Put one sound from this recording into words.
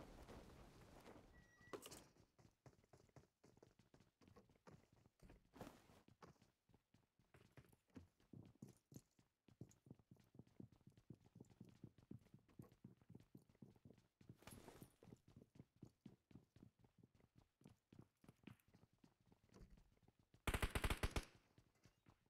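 Footsteps thud quickly on wooden floorboards.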